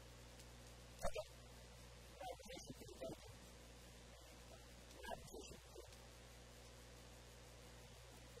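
Pages of a binder rustle as they turn.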